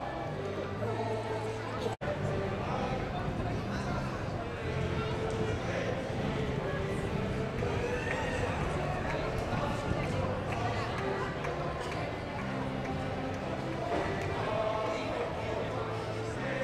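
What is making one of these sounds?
A crowd of men, women and children chatter and call out nearby outdoors.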